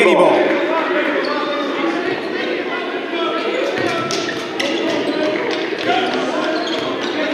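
A crowd chatters and murmurs throughout a large echoing gym.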